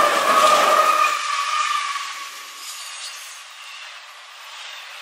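A freight train rolls past close by, rumbling and clattering on the rails, and slowly fades.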